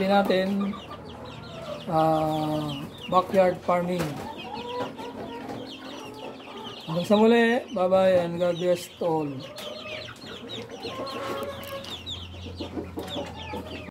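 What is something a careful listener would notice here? Small birds chirp constantly in the background.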